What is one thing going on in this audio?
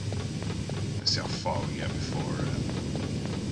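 A man speaks briefly and casually into a close microphone.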